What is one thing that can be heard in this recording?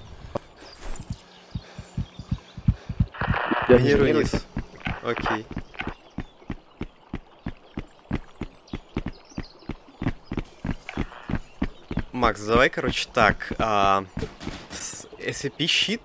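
Footsteps tread steadily on hard floors and stairs.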